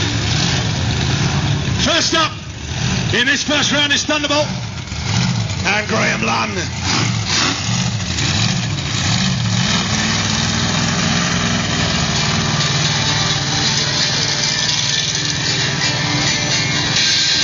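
A big truck engine rumbles and revs.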